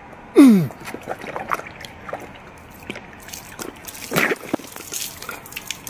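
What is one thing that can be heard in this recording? A young man gulps down a drink.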